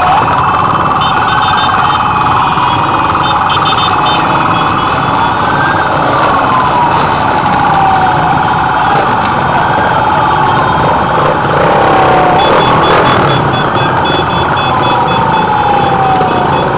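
Many small single-cylinder motorcycles ride past at low speed outdoors, engines droning and revving.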